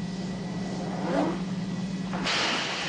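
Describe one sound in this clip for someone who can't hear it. A door bursts open with a loud bang.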